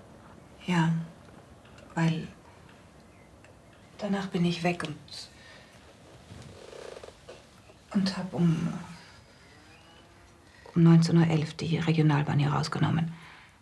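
An elderly man speaks quietly and calmly nearby.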